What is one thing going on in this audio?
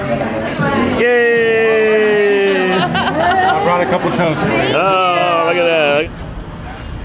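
A middle-aged woman laughs and talks with animation close by.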